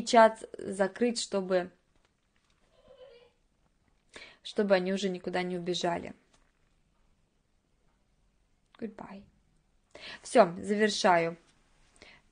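A woman speaks calmly into a microphone, in short bursts with pauses.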